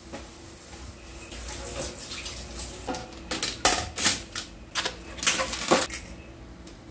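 Plastic dishes clatter and knock in a sink.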